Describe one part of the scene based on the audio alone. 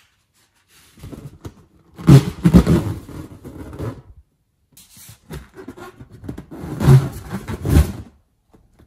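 A rubber balloon squeaks and rubs under fingers.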